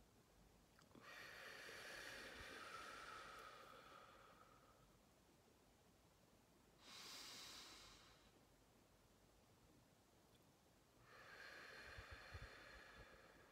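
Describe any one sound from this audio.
A woman hums long, steady notes close by, with quiet pauses between them.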